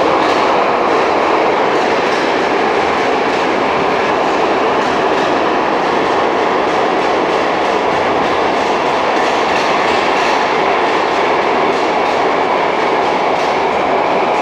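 A metal train car rattles and clatters in motion.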